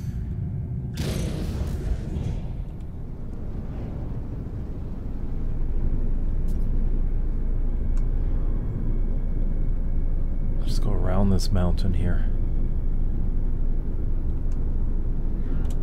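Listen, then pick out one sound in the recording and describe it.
A spaceship engine hums steadily and grows louder.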